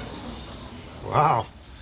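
A second man says a few words, close by.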